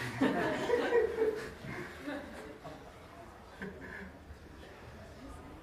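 A group of people laughs together.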